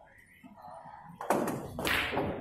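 Pool balls clack together.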